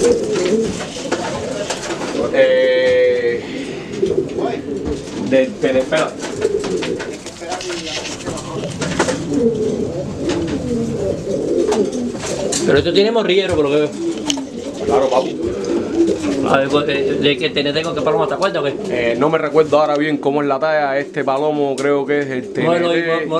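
A pigeon coos softly up close.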